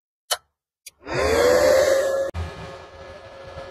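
A welding inverter's cooling fan spins up and whirs.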